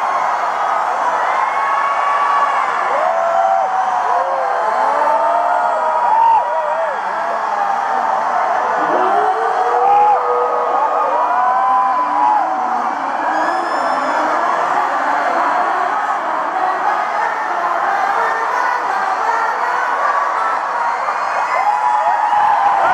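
A large crowd of young fans screams and cheers in a huge echoing arena.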